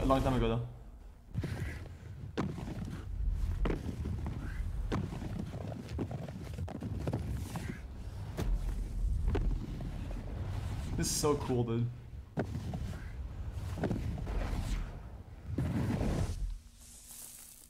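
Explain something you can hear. A snowboard scrapes across snow.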